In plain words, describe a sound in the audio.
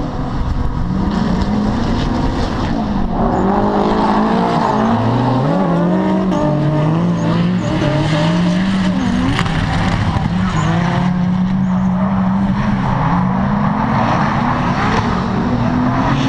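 Racing car engines rev hard and roar nearby.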